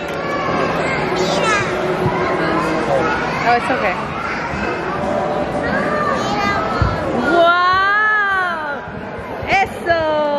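Children and adults chatter in the background of a large echoing indoor space.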